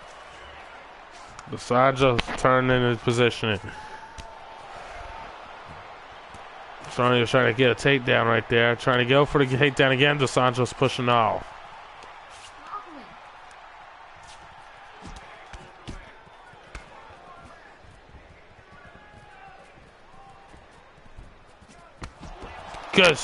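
Punches and knees land with dull thuds.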